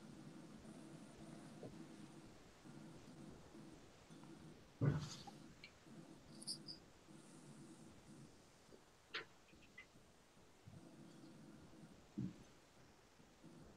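A man sips a drink close by.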